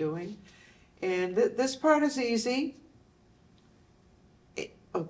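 A woman speaks calmly and clearly through a microphone.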